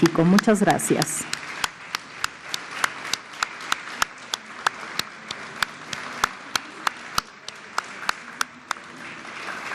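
An elderly man claps his hands slowly.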